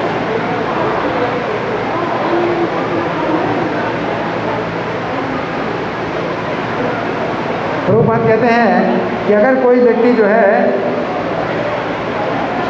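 An elderly man speaks with animation into a microphone, amplified over loudspeakers.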